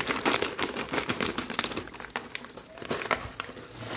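Crunchy snacks rattle into a glass bowl.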